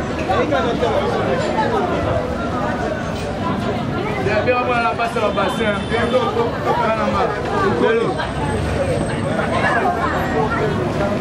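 Many men and women talk and call out close by, outdoors.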